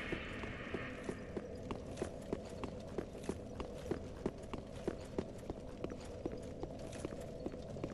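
Heavy armoured footsteps thud steadily on stone.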